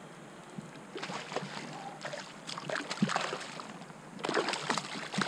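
A hooked fish splashes at the water surface.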